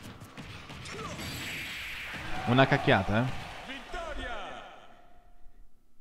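Punches and energy blasts crash and whoosh in a fast-paced fight, peaking in a loud burst.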